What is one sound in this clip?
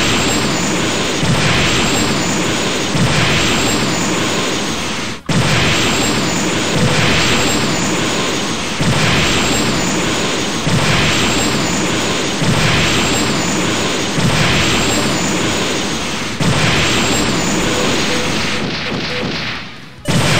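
Missiles whoosh and explode.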